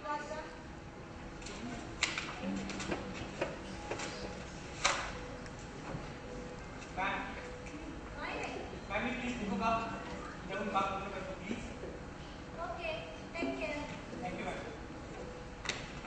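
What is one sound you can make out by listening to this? A young man and a young woman speak lines, heard from a distance in a large echoing hall.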